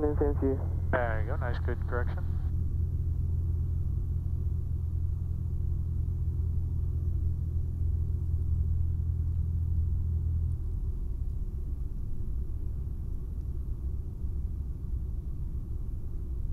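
A small propeller plane's engine drones steadily from inside the cockpit, then eases to a lower, rougher hum.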